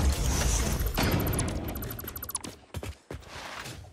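A game tool gives off a buzzing electronic hum.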